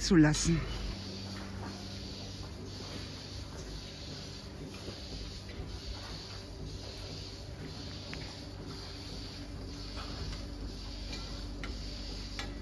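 Cows munch hay.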